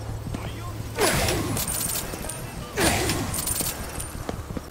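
A crackling energy blast bursts with a loud whoosh.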